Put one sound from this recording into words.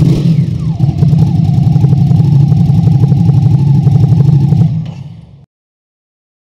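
A motorcycle engine idles with a loud, throbbing rumble through its exhaust, then quickly fades away.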